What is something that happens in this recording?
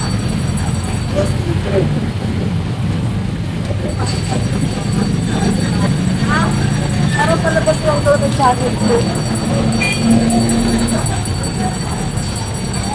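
A busy street crowd murmurs and chatters outdoors.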